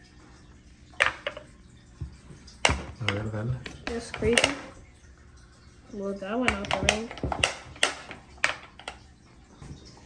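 Wooden pieces click and clatter on a small tabletop game.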